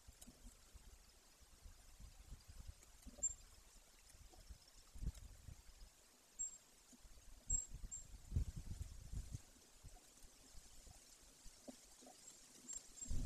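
A large bird rustles and scrapes in dry twigs and nest material.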